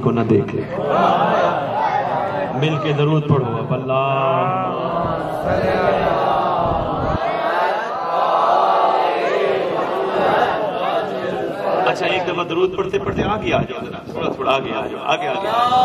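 A man speaks passionately into a microphone, heard through a loudspeaker with echo.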